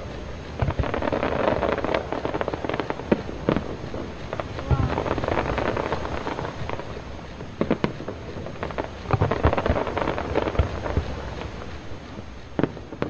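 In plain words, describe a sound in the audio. Fireworks crackle and fizz overhead.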